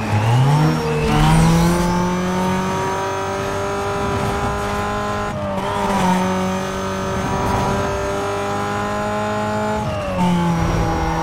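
A sports car engine drops in pitch as it shifts up a gear.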